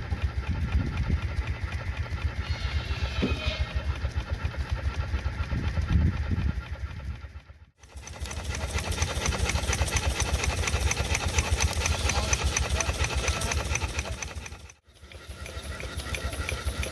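A small steam engine chuffs in a fast, steady rhythm.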